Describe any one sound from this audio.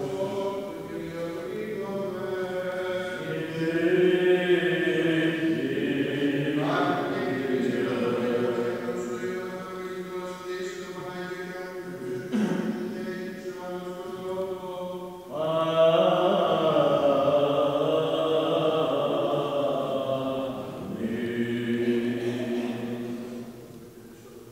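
A man chants a slow, drawn-out melody in a resonant, echoing hall.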